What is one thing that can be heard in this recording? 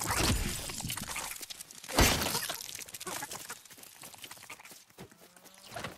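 Sword swings whoosh and strike with sharp hits.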